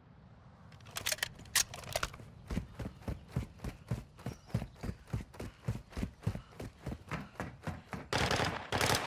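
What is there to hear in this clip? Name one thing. Quick footsteps patter along at a steady running pace.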